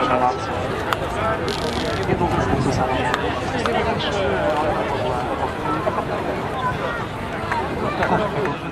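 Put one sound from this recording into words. A jet engine roars as a fighter plane takes off.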